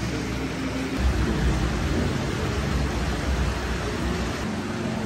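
Water churns and splashes in a pool.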